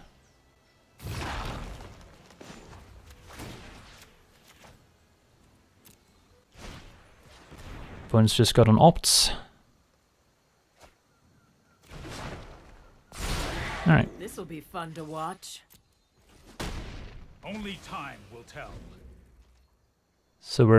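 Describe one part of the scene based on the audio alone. Digital card-game effects whoosh and chime as cards are played and attacks land.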